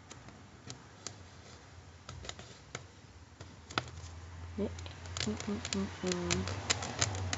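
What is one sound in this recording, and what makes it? Fingers tap and scrape against a cardboard box.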